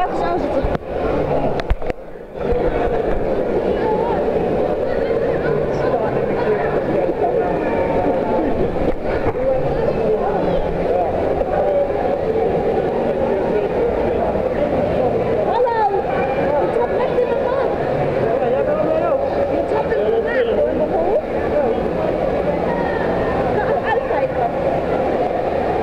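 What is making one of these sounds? A crowd of people chatters and shouts in a large echoing hall.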